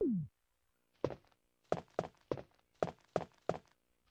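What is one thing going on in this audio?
Footsteps tap evenly on a hard floor.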